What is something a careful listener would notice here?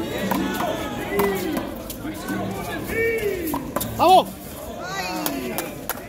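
A rubber ball smacks against a wall.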